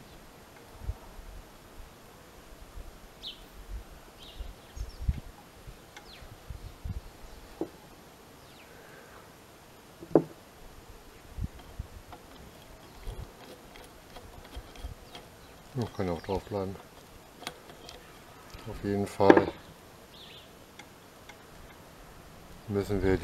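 A sewing machine's mechanism clicks and knocks as its handwheel is turned by hand.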